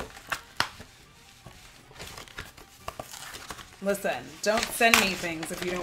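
A plastic package rustles and crinkles as hands open it.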